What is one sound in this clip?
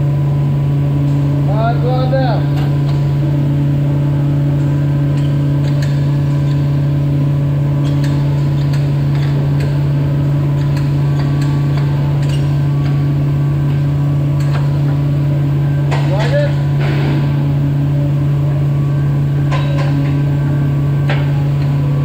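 An overhead crane motor hums steadily as it lifts a heavy load.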